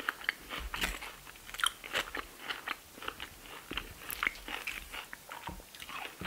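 Crunchy tortilla chips crackle and snap as fingers break them.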